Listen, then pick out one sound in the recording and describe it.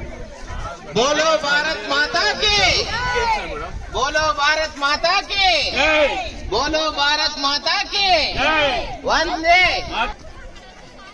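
A man shouts slogans loudly through a microphone outdoors.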